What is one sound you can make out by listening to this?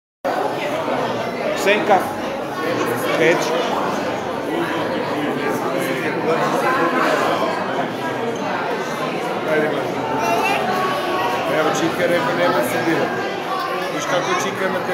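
A group of children chatter and murmur.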